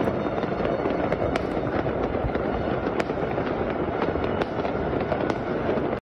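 Fireworks crackle and bang rapidly overhead.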